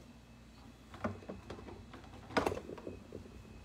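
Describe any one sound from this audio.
A paintbrush scrapes through paint on a palette.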